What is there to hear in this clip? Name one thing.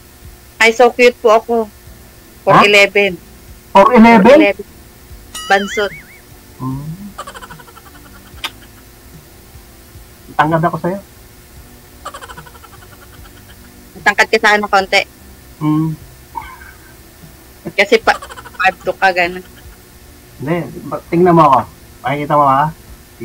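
A middle-aged man talks and laughs over an online call.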